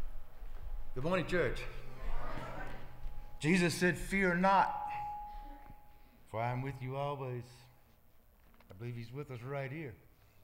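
A man speaks loudly into a microphone in an echoing hall.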